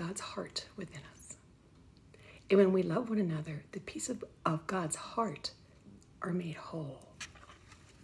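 A middle-aged woman reads aloud calmly, close to the microphone.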